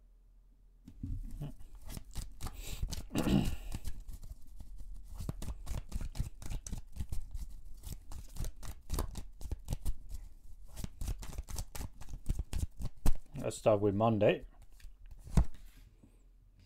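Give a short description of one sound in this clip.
A man shuffles a deck of cards with quick riffling clicks.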